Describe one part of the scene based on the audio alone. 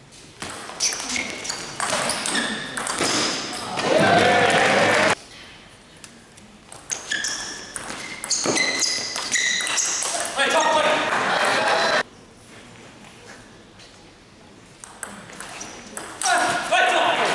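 A table tennis ball clicks back and forth between paddles and the table in a large echoing hall.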